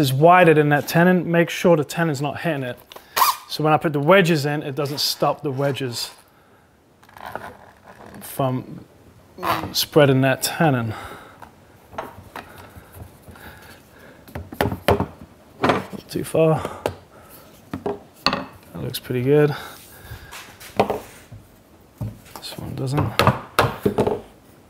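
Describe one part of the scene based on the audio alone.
A clamp is tightened with a faint ratcheting creak.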